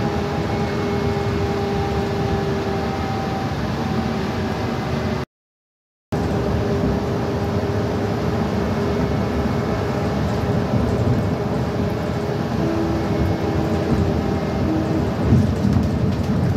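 A car engine hums steadily, heard from inside.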